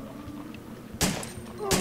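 A handgun fires a loud shot.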